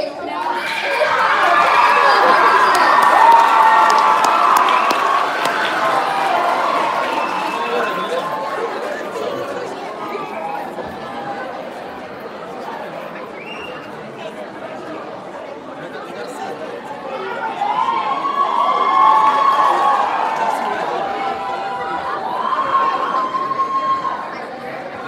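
Two young girls sing together in a large echoing hall.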